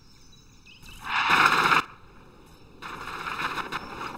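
A handheld energy beam weapon zaps.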